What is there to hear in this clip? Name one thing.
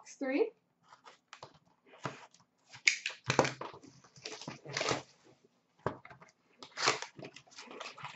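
Cardboard packs rustle and tap as they are handled.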